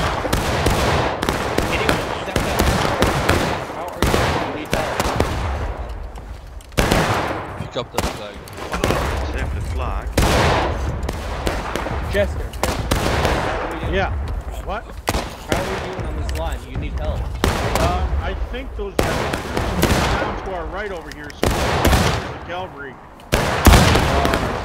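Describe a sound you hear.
Rifle shots crack and boom all around, near and far.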